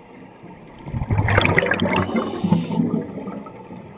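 Scuba bubbles gurgle and rush loudly underwater.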